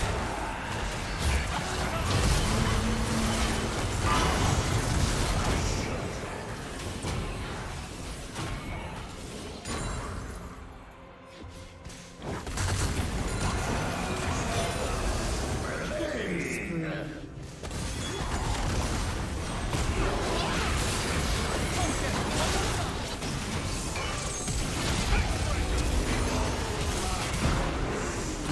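Magic blasts and clashing weapons crackle and boom in a fast fight.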